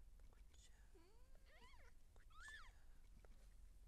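A newborn kitten squeaks in high, thin mews.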